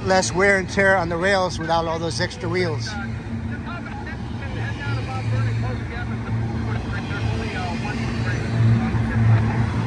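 A freight train rumbles and clatters past nearby.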